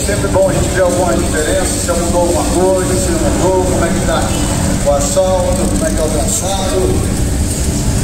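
Car engines idle and rumble.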